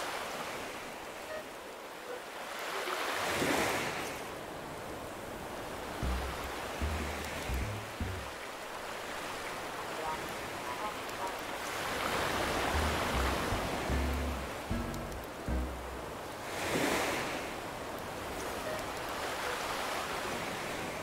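Waves wash gently onto a shore, swelling and fading.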